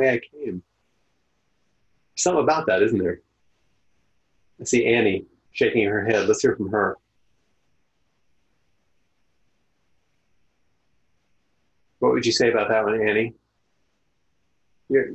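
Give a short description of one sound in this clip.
An older man speaks calmly through a microphone, in short phrases with long pauses.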